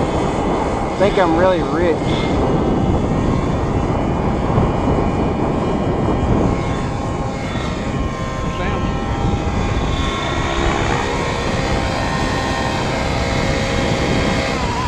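A nitro-engined radio-controlled helicopter whines as it flies and comes in to land.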